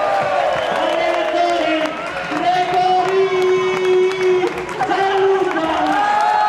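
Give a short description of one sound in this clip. A crowd of fans chants and sings loudly in a large echoing hall.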